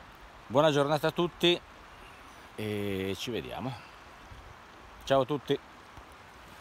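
A middle-aged man speaks close by with animation, outdoors.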